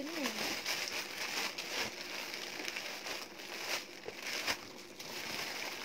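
Plastic wrapping rustles and crinkles close by.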